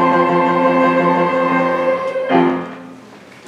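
A large choir sings a held chord with piano in an echoing hall.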